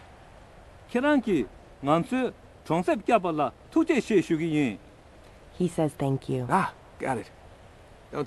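An elderly man speaks warmly.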